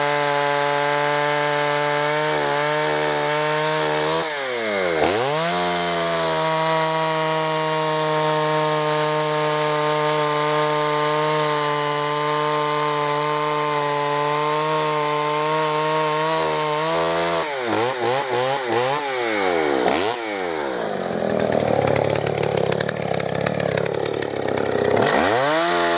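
A chainsaw engine roars loudly and revs up and down.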